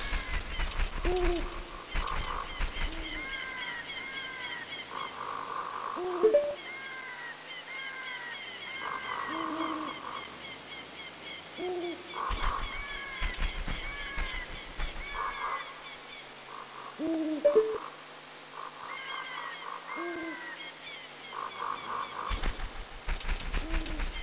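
Cheerful video game music plays with chiming notes.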